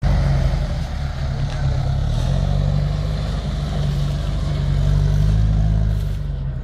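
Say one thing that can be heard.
Tyres squelch through wet mud.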